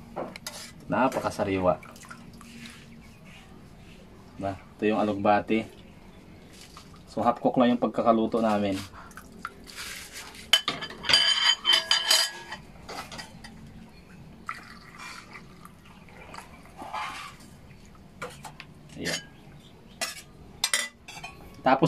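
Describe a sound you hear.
A metal ladle clinks and scrapes against a pot.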